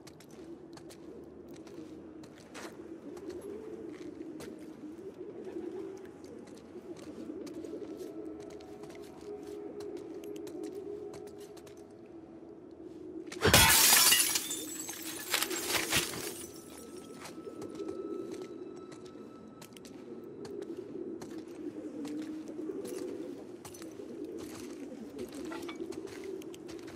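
Footsteps walk steadily across a floor.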